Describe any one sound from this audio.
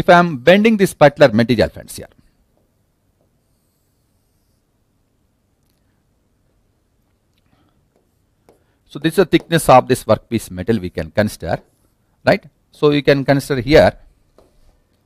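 A man speaks calmly into a microphone, in short bursts with long pauses.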